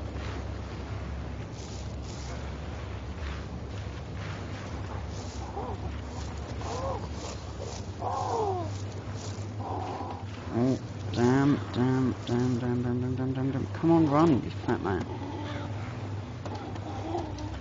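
Footsteps crunch on rough ground at a steady walking pace.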